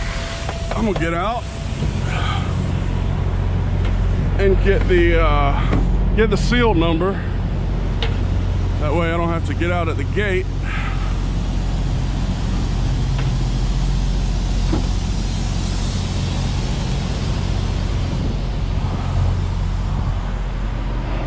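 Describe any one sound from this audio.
An engine hums steadily nearby.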